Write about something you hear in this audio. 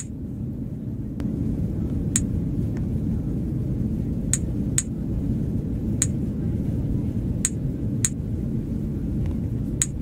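A steady low engine hum fills an airplane cabin.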